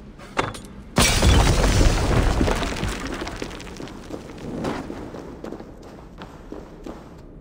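Flames roar and crackle, then slowly die down.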